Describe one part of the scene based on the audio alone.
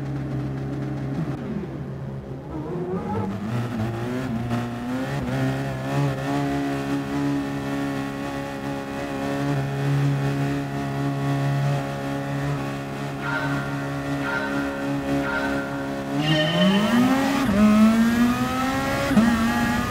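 A racing car engine revs up and roars as the car accelerates.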